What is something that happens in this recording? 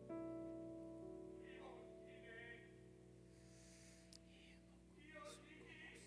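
A guitar rings out in a sustained chord that fades.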